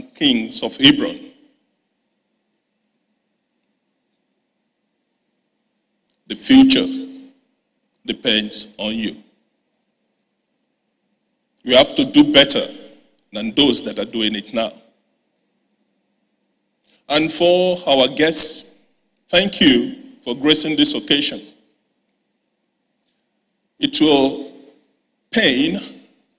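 A man speaks calmly and deliberately into a microphone, with long pauses between phrases.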